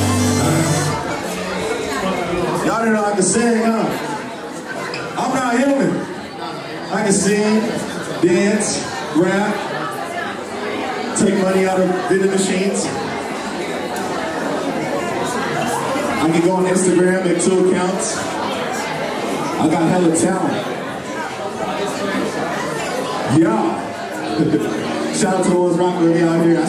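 A young man raps rhythmically into a microphone, heard through loudspeakers.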